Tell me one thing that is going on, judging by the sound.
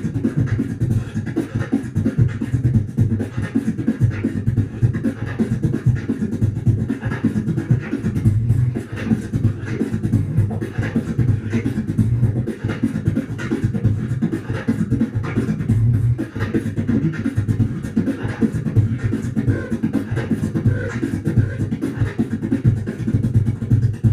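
A young man beatboxes into a microphone with fast, punchy bass beats and clicks.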